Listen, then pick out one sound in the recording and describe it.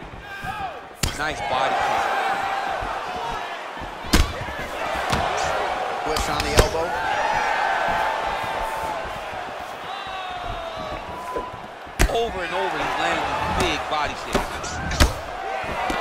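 Blows land on a body with sharp thuds.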